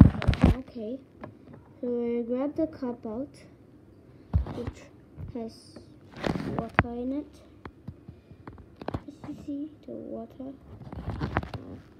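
Plastic toy bricks click and tap as fingers handle them.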